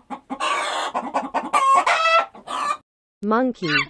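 A rooster crows loudly.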